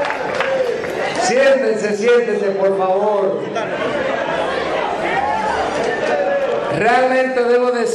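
A man speaks with animation through a loudspeaker.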